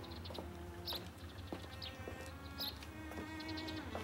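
Footsteps walk along a passage.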